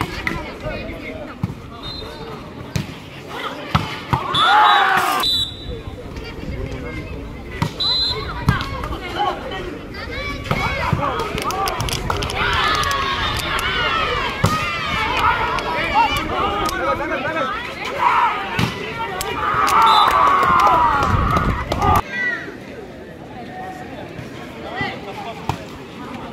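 A ball is struck with sharp slaps.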